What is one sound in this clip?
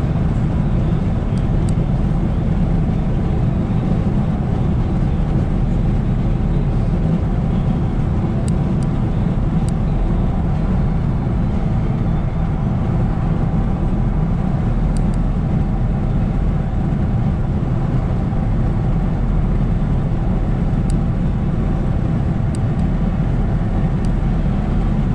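A car drives fast on a highway with a steady low road rumble from inside the cabin.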